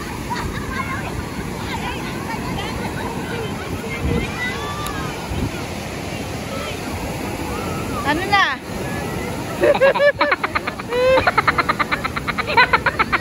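Ocean waves break and wash steadily onto the shore outdoors.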